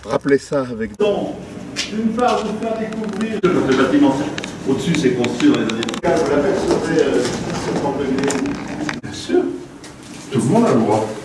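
A woman talks with a small group of people indoors.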